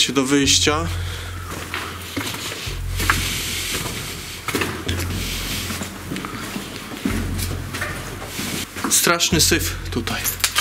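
Footsteps crunch on loose stones and gravel.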